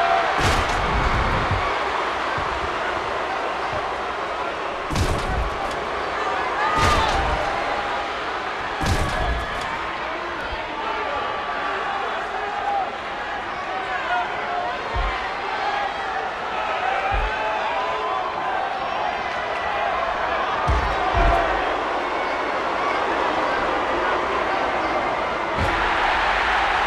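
Heavy thuds of bodies slamming down ring out a few times.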